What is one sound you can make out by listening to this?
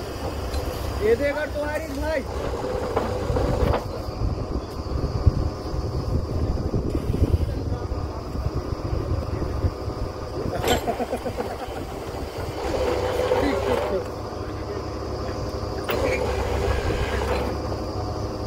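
Men talk loudly over the engine noise.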